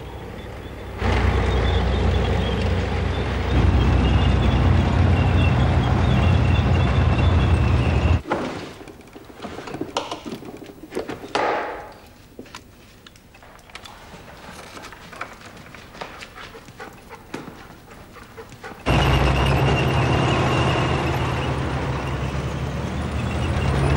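A tank engine rumbles loudly.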